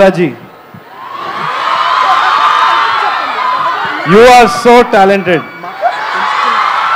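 A crowd cheers and murmurs.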